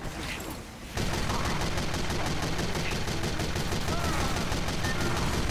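Gunfire bursts rapidly in a game.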